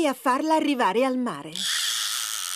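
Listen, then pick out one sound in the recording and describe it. A woman speaks in a cheerful cartoon voice.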